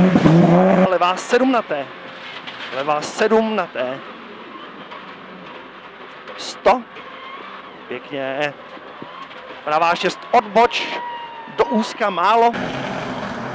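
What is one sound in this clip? A car engine revs up and down, heard from inside the car.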